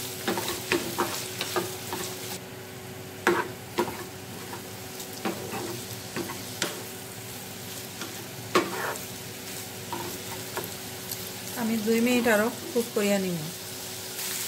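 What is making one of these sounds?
A wooden spoon scrapes and knocks against a frying pan.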